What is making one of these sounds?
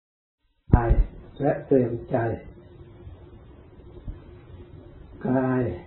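A man speaks calmly and slowly, close to a microphone.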